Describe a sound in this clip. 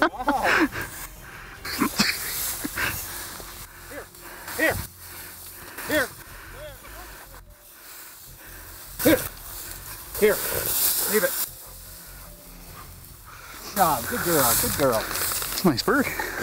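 Dry grass rustles underfoot.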